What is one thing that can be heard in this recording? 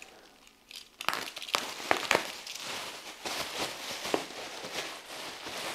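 A knife cuts through bubble wrap with a scratchy rasp.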